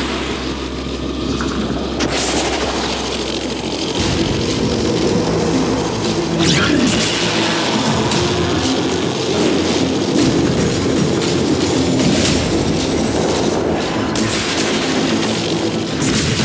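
An energy beam weapon in a video game fires with a crackling hum.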